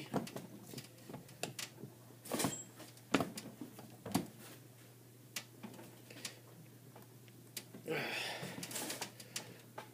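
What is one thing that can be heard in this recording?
A ratchet wrench clicks in short bursts as a metal fitting is tightened.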